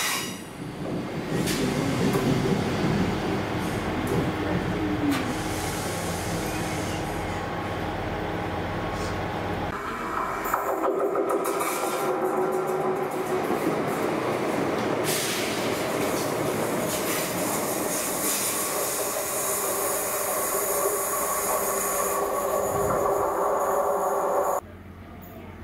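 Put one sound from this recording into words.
A diesel train rumbles along the tracks, its engine droning.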